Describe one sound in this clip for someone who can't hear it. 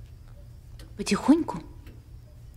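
A woman speaks quietly close by.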